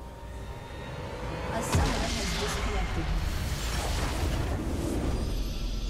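Game spell effects crackle and boom loudly.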